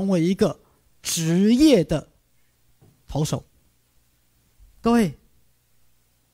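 A man speaks with animation into a microphone, in short bursts with pauses.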